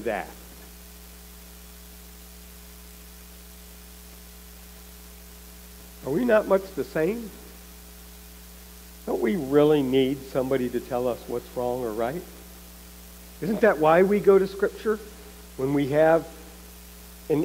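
A man speaks calmly through a microphone, pausing between phrases.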